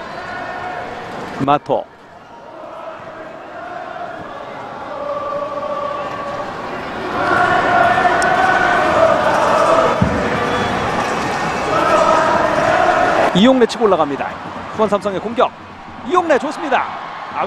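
A large stadium crowd chants and cheers loudly in the open air.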